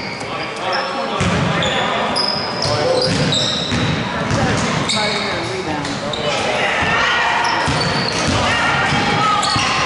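A crowd of spectators talks and cheers in an echoing gym.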